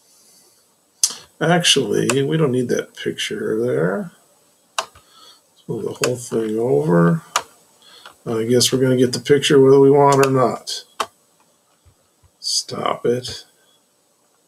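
An elderly man talks calmly into a microphone, in short bursts with pauses.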